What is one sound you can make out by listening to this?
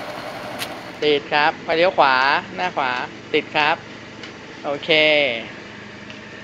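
A scooter engine revs up close.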